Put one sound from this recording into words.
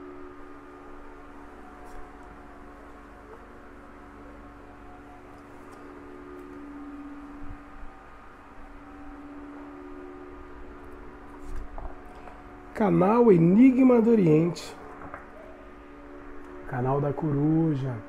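Playing cards are laid down softly, one after another.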